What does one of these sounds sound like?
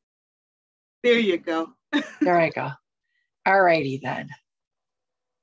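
A middle-aged woman speaks calmly and warmly over an online call.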